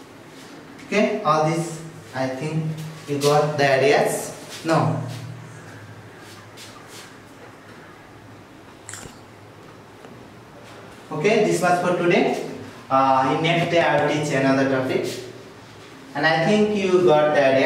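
A man speaks calmly and clearly, as if explaining, close by.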